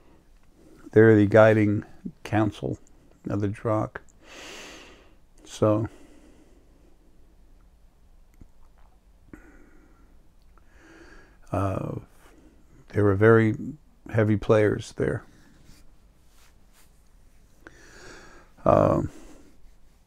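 An older man speaks calmly and slowly, close by, in short phrases with pauses.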